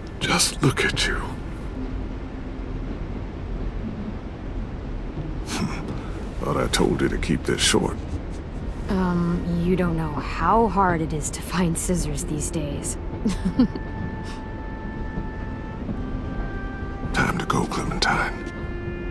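A man speaks softly and warmly, up close.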